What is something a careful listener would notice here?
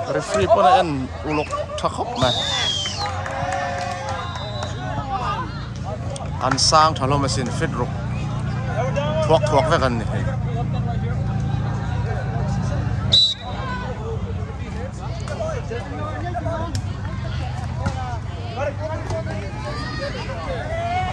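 Young people chatter and shout nearby outdoors.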